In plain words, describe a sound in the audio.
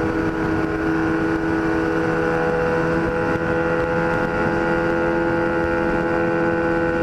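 A motorcycle engine hums steadily up close at speed.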